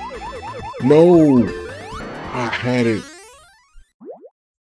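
Game music and chimes play, then stop.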